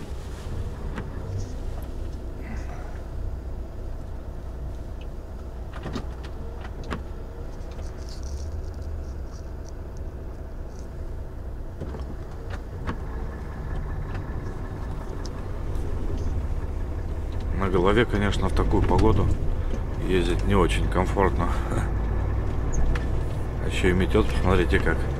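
Windscreen wipers sweep back and forth.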